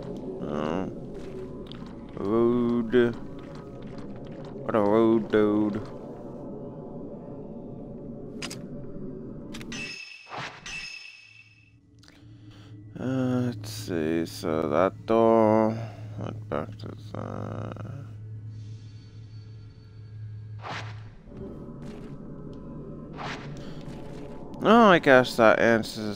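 Footsteps fall slowly on a wooden floor.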